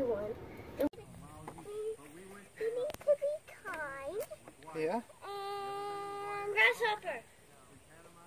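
A young girl talks with animation close by, outdoors.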